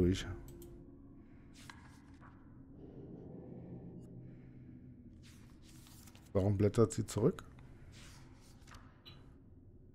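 Paper pages rustle as they are turned by hand.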